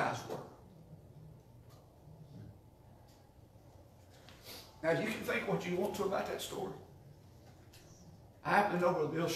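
A man speaks calmly, pausing between phrases.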